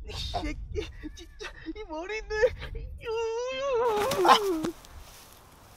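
A young man laughs and shrieks loudly close by.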